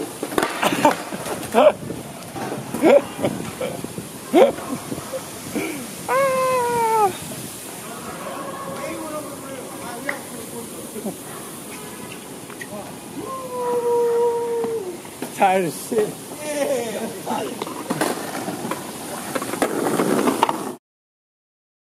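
Skateboard wheels roll and clack on stone pavement outdoors.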